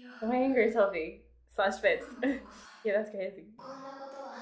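A young woman talks animatedly into a microphone, close by.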